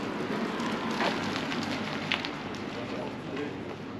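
A motor scooter rides past nearby.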